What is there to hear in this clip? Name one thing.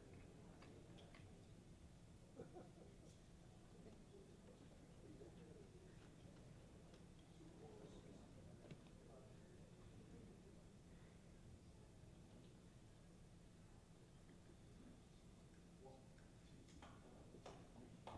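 An audience murmurs and chatters quietly.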